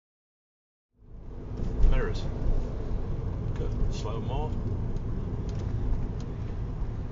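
A car engine hums and tyres roll on the road from inside a moving car.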